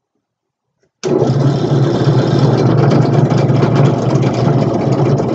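A drill press motor whirs loudly and steadily.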